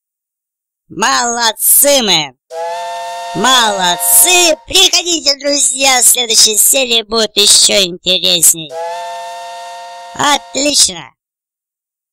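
A cheerful electronic jingle plays in short bursts.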